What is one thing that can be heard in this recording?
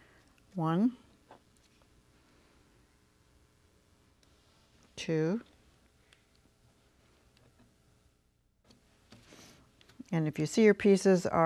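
A middle-aged woman speaks calmly into a microphone, close by, in short bursts.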